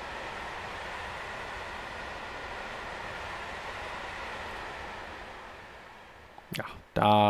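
A freight train rumbles past along the tracks.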